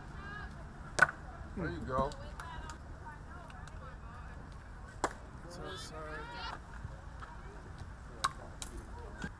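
A bat cracks sharply against a softball.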